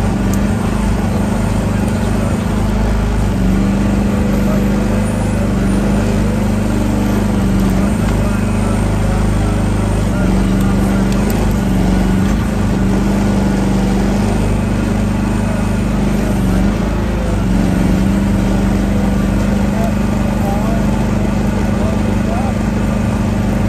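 An excavator's hydraulics whine as the arm moves.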